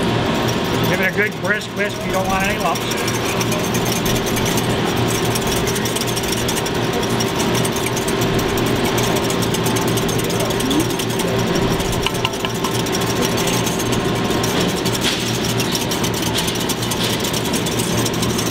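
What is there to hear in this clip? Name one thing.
A whisk clinks and scrapes against a glass cup.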